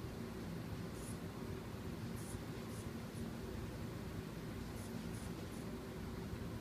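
A blood pressure cuff's valve hisses softly in short bursts.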